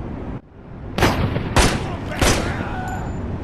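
Gunshots ring out several times.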